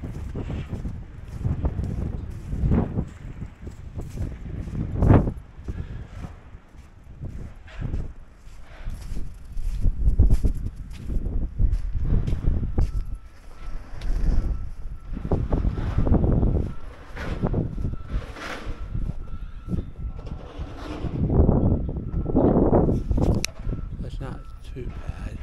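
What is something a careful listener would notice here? Footsteps crunch on packed snow.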